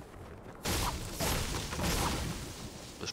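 A pickaxe chops through a bush with sharp thwacks.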